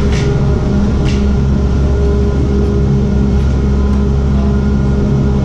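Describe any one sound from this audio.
Lift machinery hums and drones steadily in an echoing hall.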